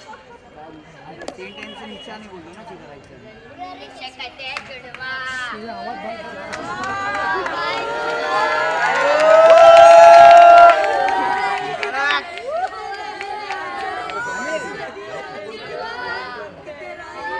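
A crowd of young men and women chatter and laugh close by.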